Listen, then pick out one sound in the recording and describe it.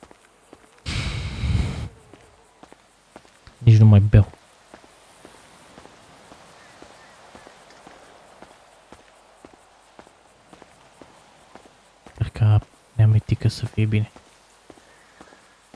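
Footsteps crunch on a dusty road.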